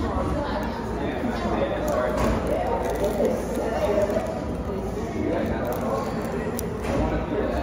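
Flaky pastry crackles as it is torn apart by hand.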